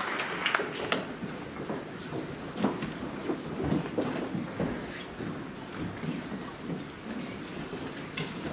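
A crowd of people chat in low voices.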